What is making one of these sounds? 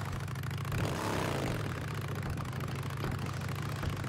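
Motorcycle tyres rattle over wooden planks.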